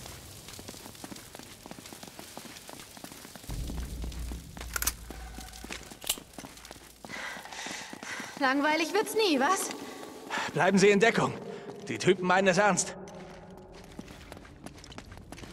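Footsteps run over a stone floor.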